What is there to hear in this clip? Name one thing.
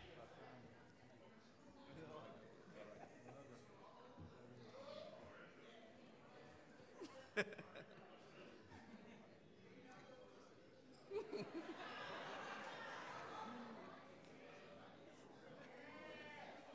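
Voices of adults murmur and talk in a large echoing hall.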